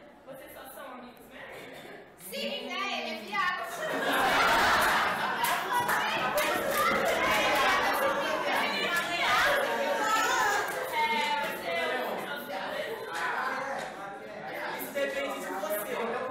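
Teenage girls talk and laugh with animation.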